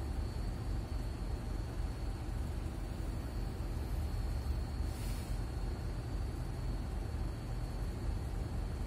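A bus engine rumbles low and steady while driving in slow traffic.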